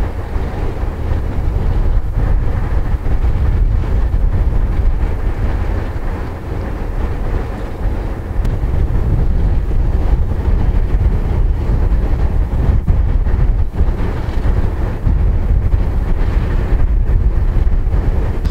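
Diesel-electric locomotives idle with a deep rumble.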